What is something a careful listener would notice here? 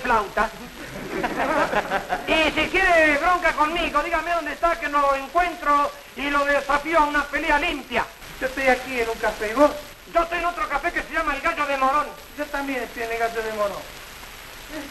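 A man sings with a wavering voice on an old, thin-sounding recording.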